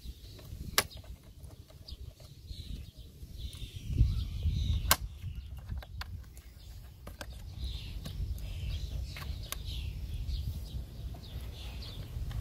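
Plastic engine parts click and knock as a hand handles them.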